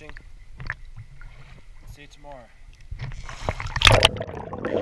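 Water splashes and laps close by.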